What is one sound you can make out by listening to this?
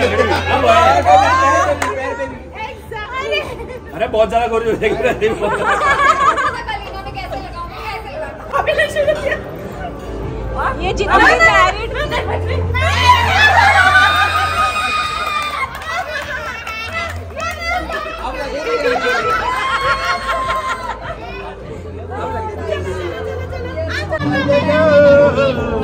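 A crowd of adults chatters loudly and excitedly close by.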